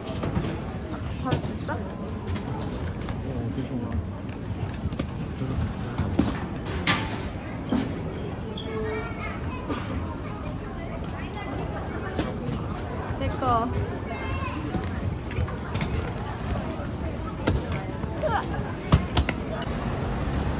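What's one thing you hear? A baggage conveyor belt rumbles steadily.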